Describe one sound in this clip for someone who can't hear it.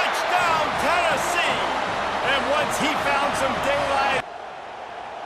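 A large stadium crowd cheers and whistles loudly.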